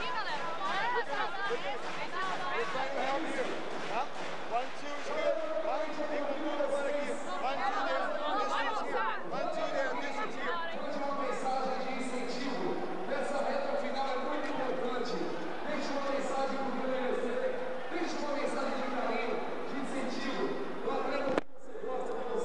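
A man speaks urgently and quickly to a group up close.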